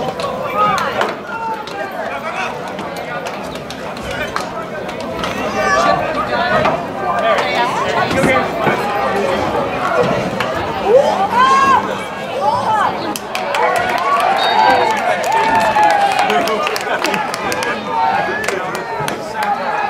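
A crowd of players shouts and cheers outdoors.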